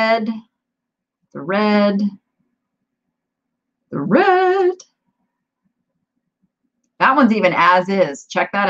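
An older woman speaks with animation into a close microphone, in short drawn-out phrases with pauses.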